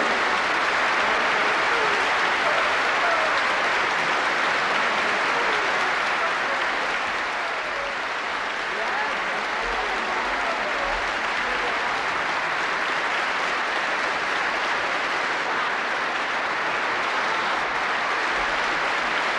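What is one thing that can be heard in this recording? A large audience applauds and cheers steadily in a big echoing hall.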